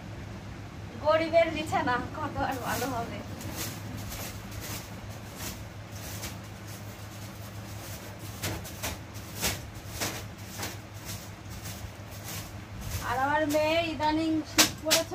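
A young woman speaks nearby with animation.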